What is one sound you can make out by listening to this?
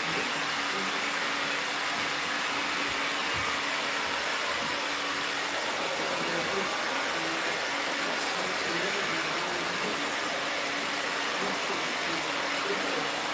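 A hair dryer blows with a loud steady whoosh.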